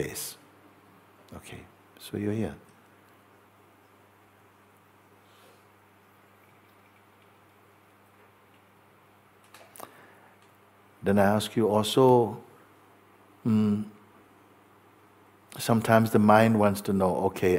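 A middle-aged man speaks calmly and slowly into a close microphone, with long pauses.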